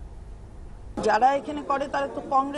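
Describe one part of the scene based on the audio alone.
A woman speaks clearly and with emphasis into a nearby microphone.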